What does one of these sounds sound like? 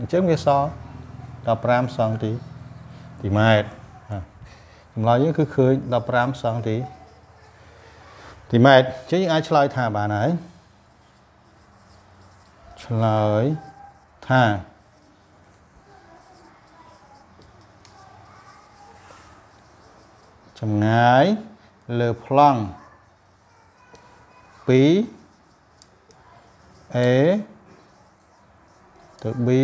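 A man explains calmly and clearly, close by, in short bursts with pauses.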